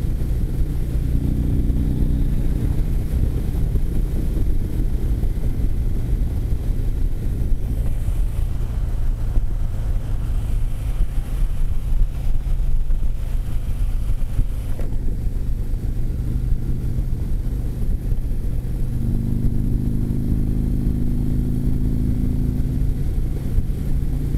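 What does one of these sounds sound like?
A V-twin touring motorcycle engine drones at highway speed.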